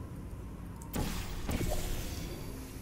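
A game's portal opens with a whooshing burst.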